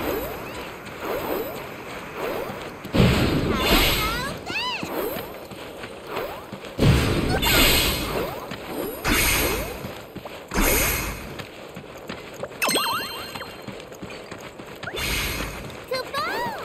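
A sword swooshes through the air in quick swings.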